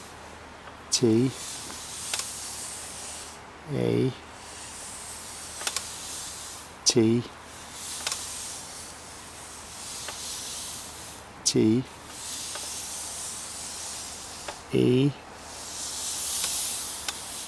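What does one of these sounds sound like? A wooden pointer slides and scrapes softly across a board.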